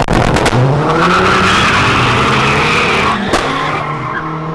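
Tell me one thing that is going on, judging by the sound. Tyres screech as cars spin their wheels.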